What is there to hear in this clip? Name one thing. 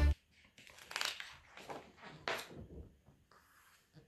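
A paper page turns.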